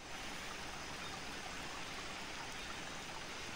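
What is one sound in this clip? Flames crackle softly.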